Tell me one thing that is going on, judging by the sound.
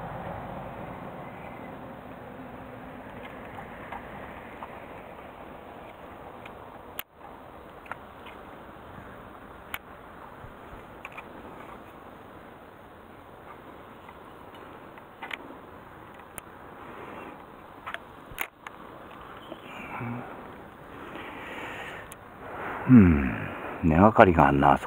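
A fishing reel clicks and whirs as its line is wound in.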